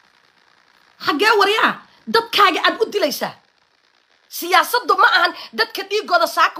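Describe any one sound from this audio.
A woman speaks with animation close to a microphone.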